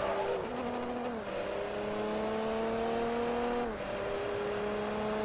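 A racing car engine roars at high revs, climbing in pitch and dropping sharply with each gear change.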